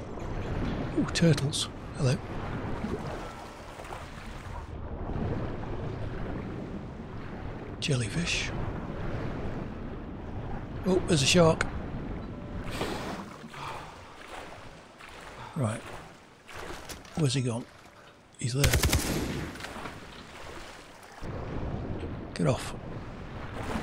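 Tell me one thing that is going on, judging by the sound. Water splashes and gurgles around a swimmer.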